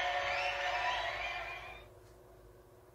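Upbeat music plays from a tablet's small speaker and then cuts off.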